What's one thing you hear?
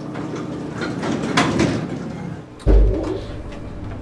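Elevator doors slide shut with a thud.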